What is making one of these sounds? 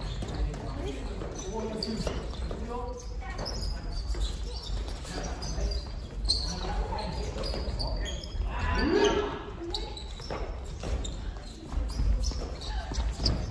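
Shuttlecocks are struck with rackets, giving light pops.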